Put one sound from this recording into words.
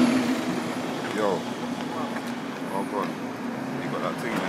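A young man talks into a phone close by.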